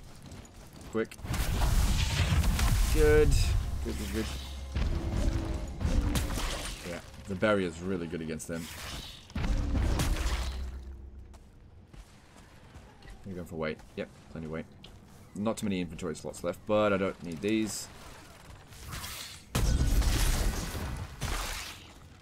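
Magic blasts crackle and boom in quick bursts.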